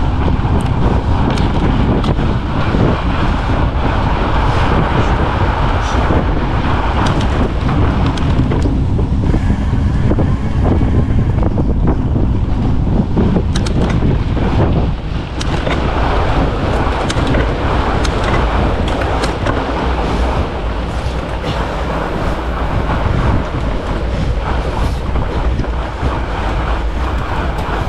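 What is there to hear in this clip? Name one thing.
Wind rushes loudly past a moving bicycle.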